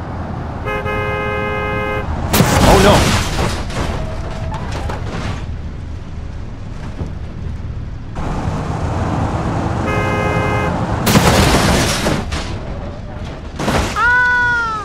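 A car engine hums as a car drives along.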